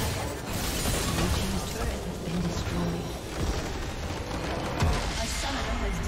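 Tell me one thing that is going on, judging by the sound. Video game spell effects crackle and clash loudly.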